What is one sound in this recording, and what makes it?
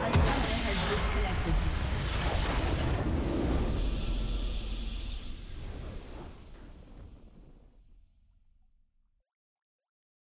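A triumphant game fanfare swells and then slowly fades away.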